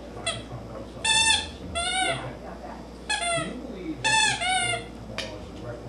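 A squeaky toy squeals loudly in short bursts as a dog chews on it.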